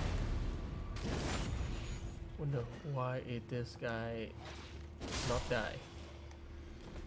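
Magic spells burst with a whooshing crackle.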